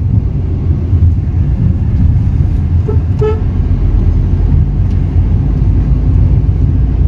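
A car engine hums steadily with low road rumble from inside the moving car.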